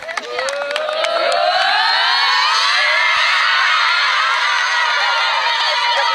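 A group of young women cheer and shout loudly.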